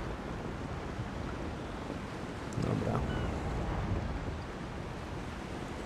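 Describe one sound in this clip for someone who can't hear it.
Waves wash and churn steadily around sailing ships at sea.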